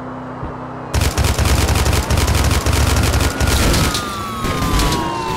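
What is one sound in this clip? Cars crash together with loud metallic bangs.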